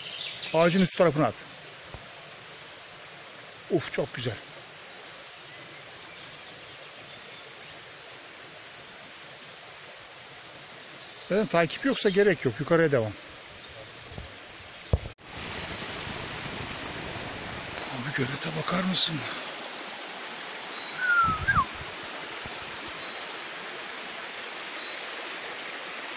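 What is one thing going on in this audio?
A shallow stream trickles and gurgles steadily outdoors.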